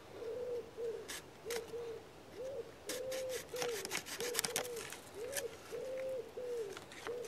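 A knife scrapes and shaves a wooden stick in short strokes.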